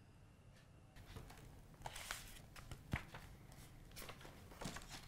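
Paper rustles as it is handled.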